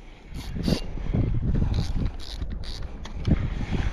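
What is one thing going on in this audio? A fishing reel clicks as it is wound in.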